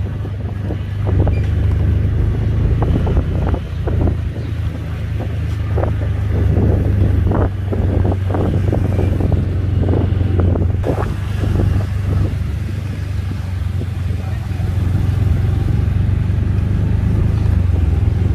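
Motorbike engines hum along a street.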